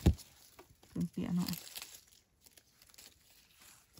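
A blade scrapes and digs into dry soil.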